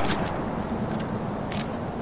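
A bow creaks as its string is drawn back.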